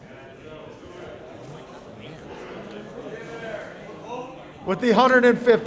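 People murmur quietly in the background.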